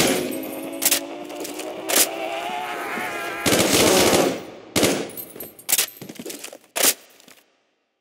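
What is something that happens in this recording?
A gun fires sharp shots in short bursts.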